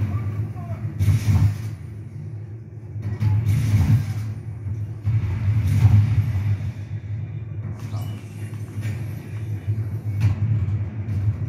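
Gunfire and explosions from a video game play through a loudspeaker.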